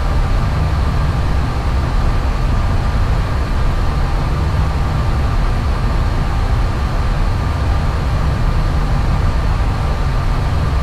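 Jet engines drone steadily with a low, even rumble.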